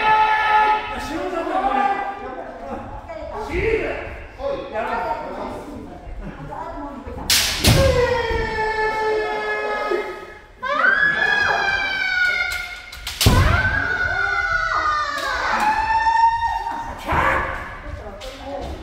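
Bamboo swords strike with sharp cracks.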